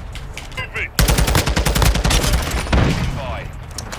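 An automatic gun fires in a rapid burst.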